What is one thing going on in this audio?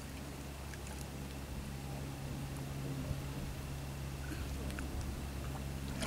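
Water sloshes and splashes softly as people wade through it.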